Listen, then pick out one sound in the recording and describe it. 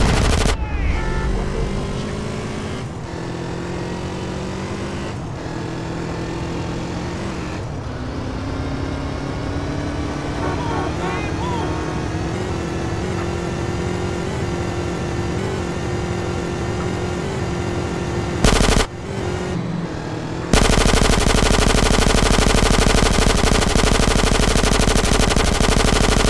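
A motorcycle engine hums steadily as it speeds along.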